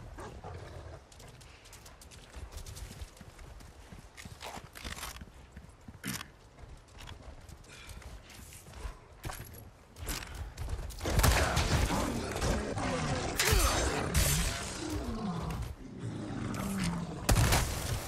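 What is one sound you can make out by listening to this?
Footsteps crunch on dirt ground.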